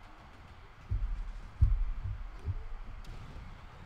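Bodies thud heavily onto a wrestling mat.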